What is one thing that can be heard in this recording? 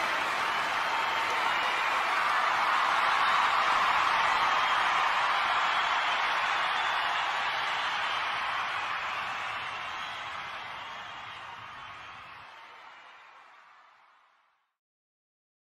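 A large crowd cheers and applauds loudly, then fades away.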